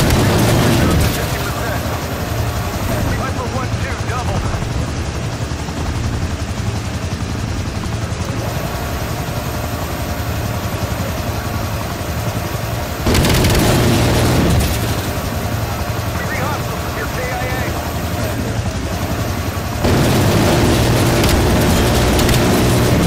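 A helicopter's engine and rotor drone steadily.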